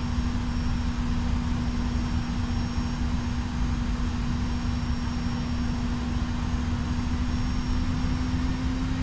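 Jet engines drone with a steady low rumble and a constant hum.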